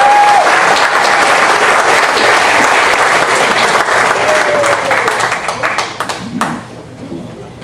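Loud applause rings out and then dies away.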